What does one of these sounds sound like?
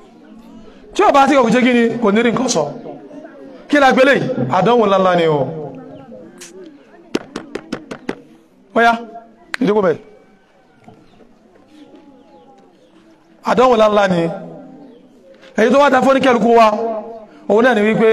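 A man speaks loudly and with animation into a close microphone, in bursts with pauses.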